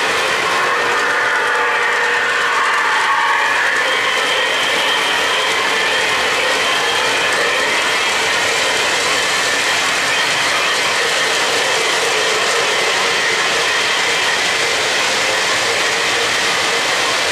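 Model trains rumble and clatter along their tracks.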